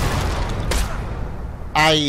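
A heavy axe swings and strikes with a thud.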